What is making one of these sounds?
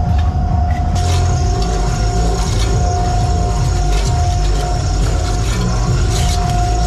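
Wire wheels spin and whir on a machine.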